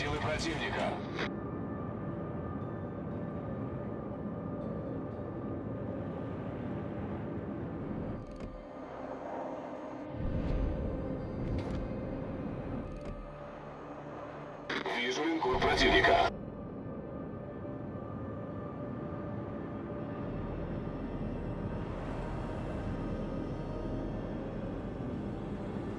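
Waves wash and rush steadily along a ship's hull.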